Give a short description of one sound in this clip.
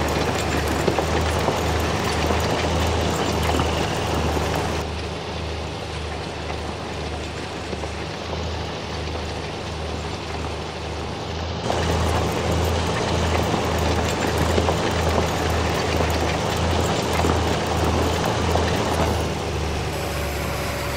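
Soil scrapes and rustles under a cultivator's tines.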